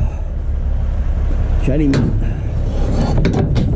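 A heavy metal bin lid creaks and clanks open.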